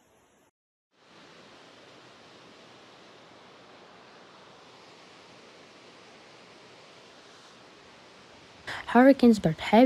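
Muddy floodwater rushes and roars down a street.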